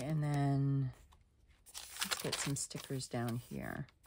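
A page flips over.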